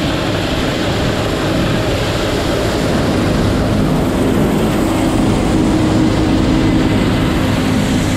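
Crop stalks rustle and crunch as a combine harvester cuts through them.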